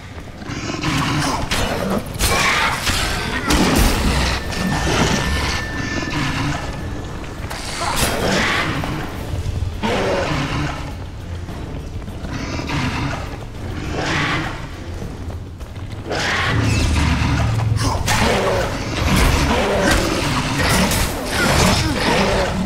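Swords swish and clash in a fight.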